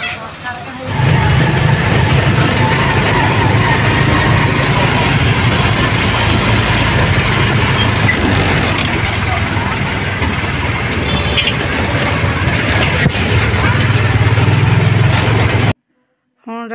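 An auto-rickshaw engine rattles and rumbles steadily close by.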